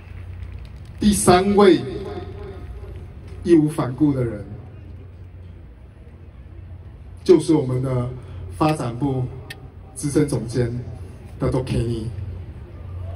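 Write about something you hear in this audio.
A man speaks calmly into a microphone over loudspeakers, echoing through a large hall.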